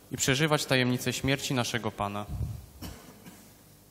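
A young man reads out through a microphone in a large echoing hall.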